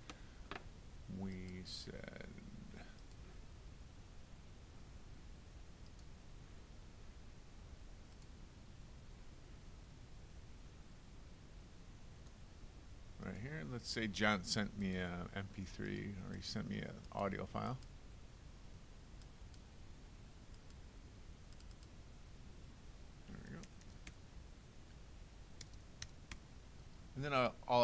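A middle-aged man speaks calmly into a close microphone.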